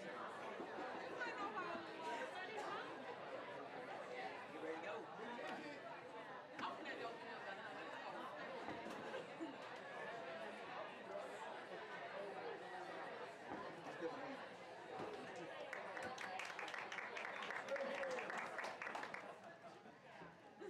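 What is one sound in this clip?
A large crowd chatters in a roomy, echoing hall.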